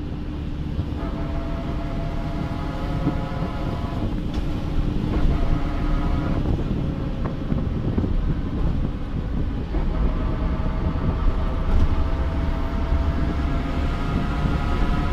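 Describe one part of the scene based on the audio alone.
A bus motor whines, rising in pitch as the bus speeds up.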